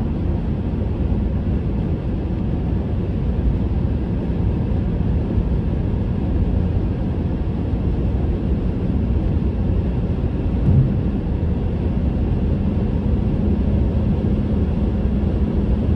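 A car's tyres roar steadily on a highway, heard from inside.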